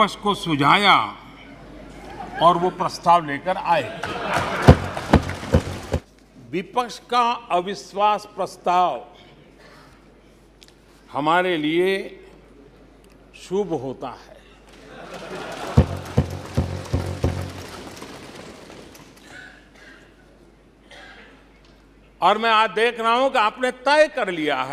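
An elderly man speaks with animation into a microphone in a large hall.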